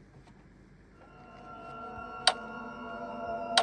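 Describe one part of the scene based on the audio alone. Game music starts playing from a tablet speaker.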